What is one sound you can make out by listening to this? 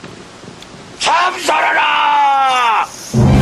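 A man shouts fiercely.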